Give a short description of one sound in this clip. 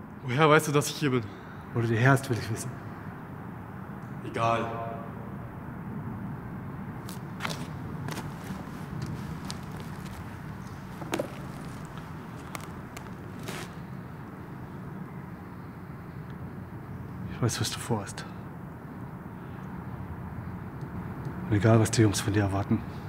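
A middle-aged man speaks up close in short, tense bursts.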